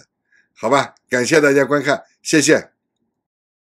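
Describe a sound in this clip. A middle-aged man speaks calmly and close into a microphone.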